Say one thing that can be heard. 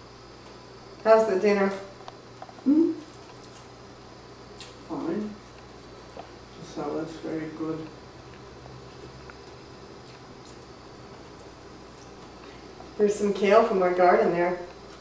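An elderly woman speaks in short bursts, close by.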